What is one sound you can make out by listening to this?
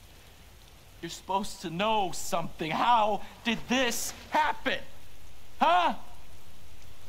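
A middle-aged man shouts in anguish, close by.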